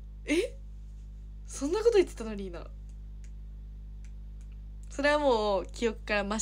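A young woman speaks softly and expressively close to a microphone.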